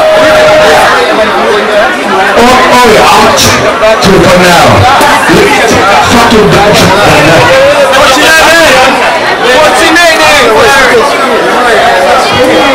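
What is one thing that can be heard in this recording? A crowd of young people talks and shouts loudly nearby.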